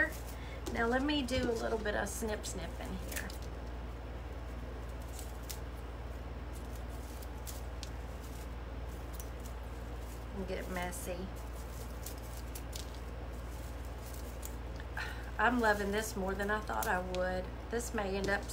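Dry straw rustles and crackles in a woman's hands.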